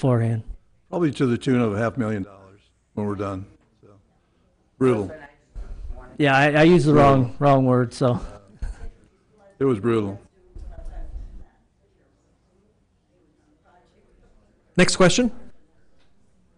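A man speaks calmly into a microphone, heard through a room's sound system.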